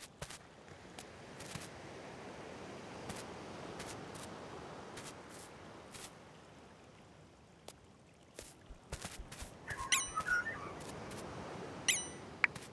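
Soft footsteps patter on grass.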